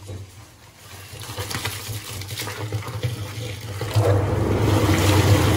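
Water pours from a hose into a metal tub, growing louder.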